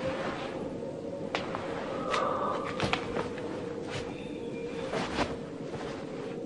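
Cloth rustles as a man handles it.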